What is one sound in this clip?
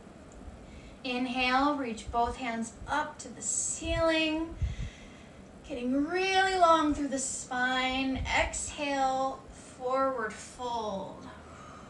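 A woman speaks calmly, giving instructions close to a microphone.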